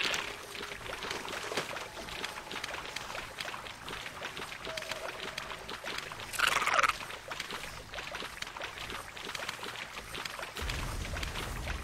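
Water splashes steadily as a large creature wades through it.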